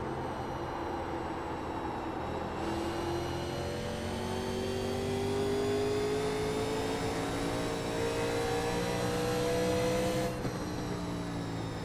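A race car engine roars steadily, its pitch slowly rising, then dropping briefly.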